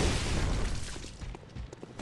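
A gunshot bangs loudly and echoes.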